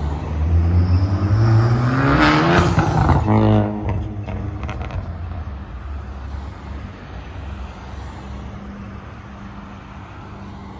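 Cars drive past close by on a street outdoors.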